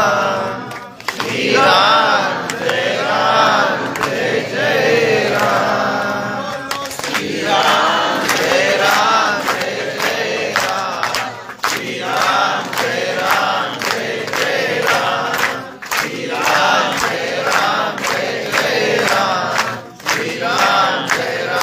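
A young man sings with feeling, close by.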